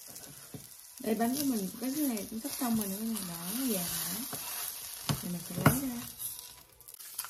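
A woman speaks in a lively, sing-song way close by.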